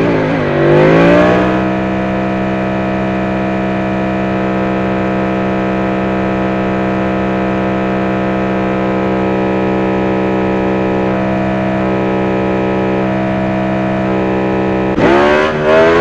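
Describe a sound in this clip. A motorcycle engine revs up and holds a steady high whine.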